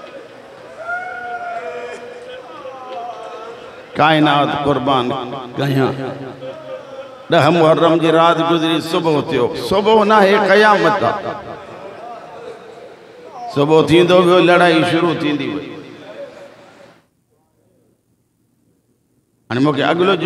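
A middle-aged man speaks passionately into a microphone, his voice loud and echoing through loudspeakers.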